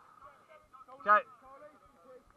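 A young man shouts loudly nearby, outdoors.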